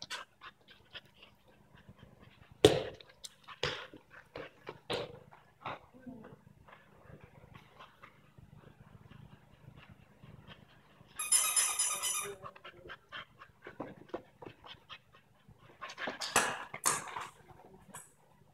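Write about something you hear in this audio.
A small dog's paws patter on a rubber floor.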